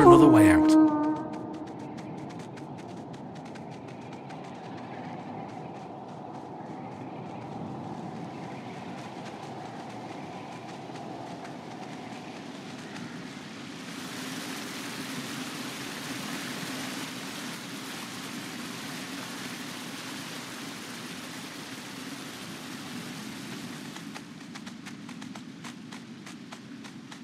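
A fox's paws patter softly on stone.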